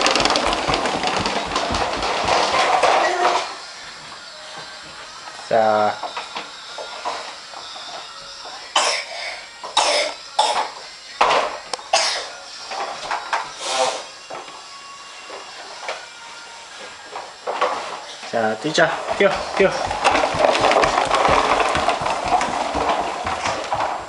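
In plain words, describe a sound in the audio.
Plastic toy wheels rattle and rumble across a hard floor.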